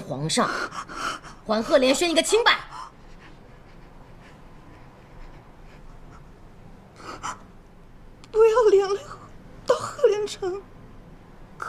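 A young woman speaks softly and earnestly, close by.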